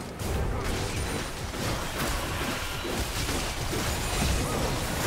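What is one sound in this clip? Video game spells crackle, whoosh and boom in a busy fight.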